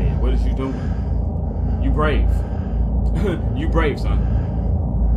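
A young man speaks in a low voice close to a microphone.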